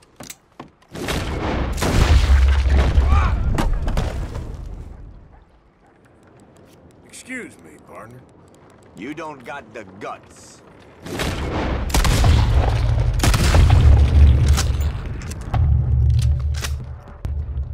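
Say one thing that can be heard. Revolver shots ring out loudly and echo.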